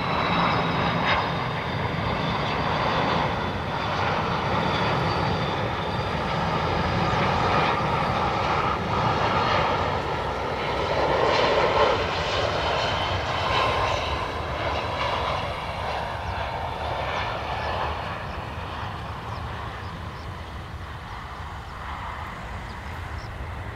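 A jet airliner's engines roar loudly as it comes in to land, then slowly fade.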